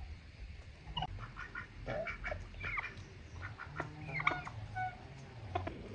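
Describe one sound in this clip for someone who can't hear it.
Chickens cluck and call outdoors.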